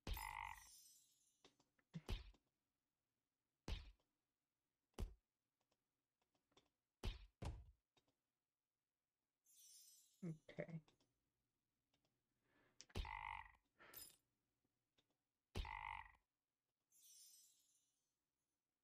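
Short chiming game sound effects play repeatedly.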